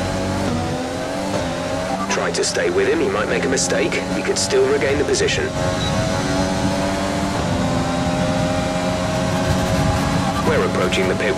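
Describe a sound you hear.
A racing car engine roars steadily at high revs, with its pitch stepping up as it shifts gears.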